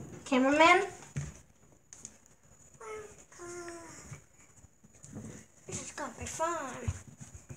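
A child speaks in a high, playful voice close by.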